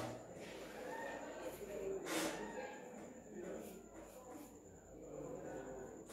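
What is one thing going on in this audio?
A marker squeaks and scratches on a whiteboard.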